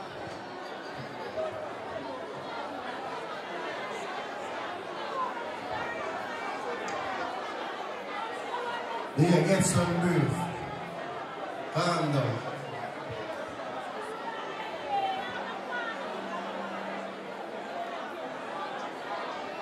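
A crowd chatters and cheers.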